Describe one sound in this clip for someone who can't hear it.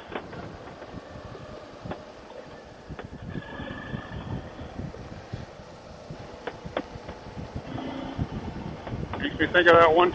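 Wind rumbles past the rider.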